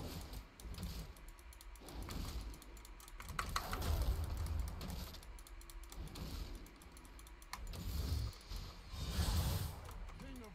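Game sword strikes and spell effects thud and crackle.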